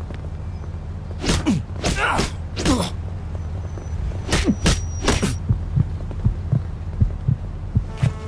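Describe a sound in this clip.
Fists thud in blows during a scuffle.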